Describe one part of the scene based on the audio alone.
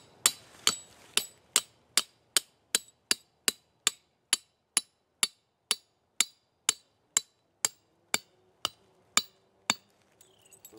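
A hammer strikes a metal stake in steady, rapid blows.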